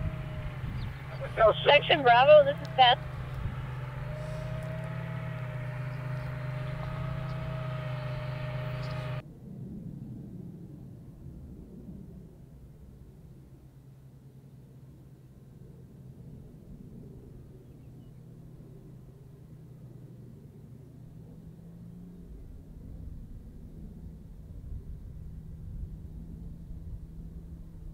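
Vehicle engines hum steadily in the distance.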